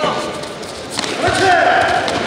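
A kick thuds against a padded chest protector.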